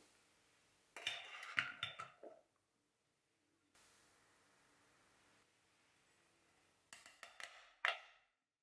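Flour pours with a soft rustle into a metal sifter.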